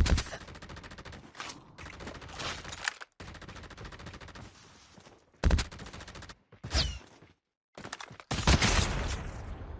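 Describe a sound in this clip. Footsteps run quickly over dry ground.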